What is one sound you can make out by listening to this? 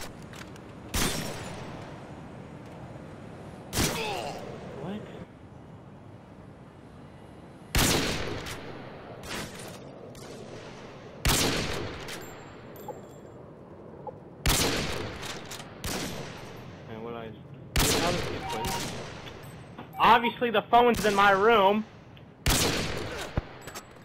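A bolt-action sniper rifle fires sharp, booming shots.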